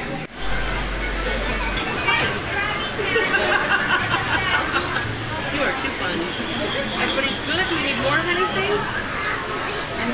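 A young girl squeals with excitement.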